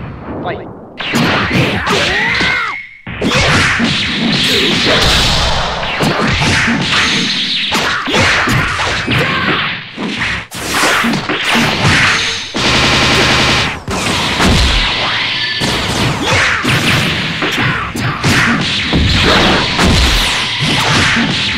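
Punches and kicks land with sharp smacking hits, fast and many times.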